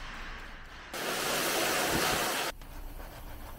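Foam sprays onto a car with a steady hiss.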